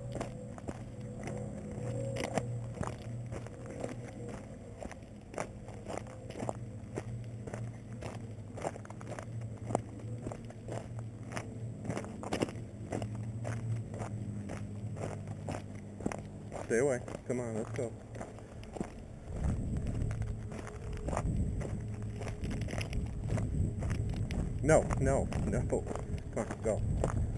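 A dog scrabbles over rocks nearby.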